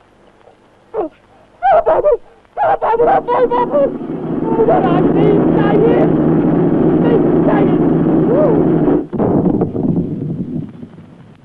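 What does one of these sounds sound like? A man shouts loudly, calling out at length.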